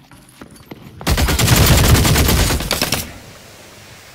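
A gun fires a loud, rapid burst.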